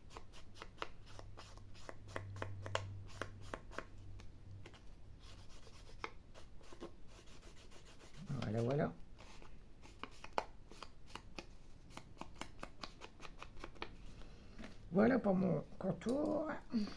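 A foam blending tool dabs and taps rapidly on paper.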